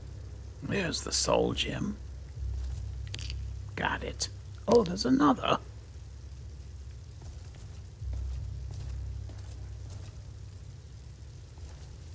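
Armoured footsteps tread on stone steps.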